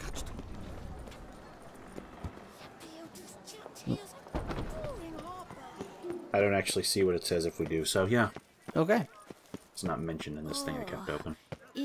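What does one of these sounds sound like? Footsteps run on stone.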